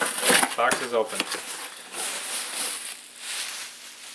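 Bubble wrap crinkles.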